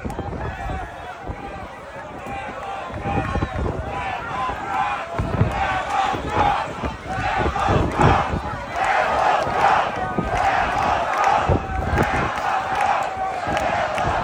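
A large crowd cheers outdoors.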